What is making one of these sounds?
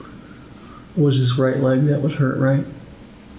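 A man speaks calmly, heard through a room microphone.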